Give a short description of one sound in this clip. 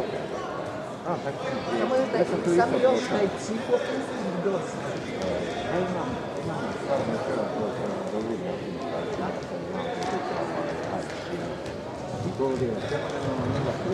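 Young people chatter and murmur at a distance in a large echoing hall.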